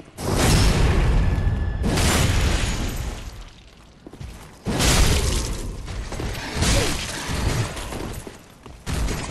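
Heavy sword blows strike with loud bursts of clashing metal.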